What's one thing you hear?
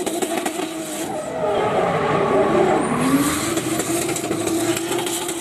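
A car engine roars loudly, revving up and down.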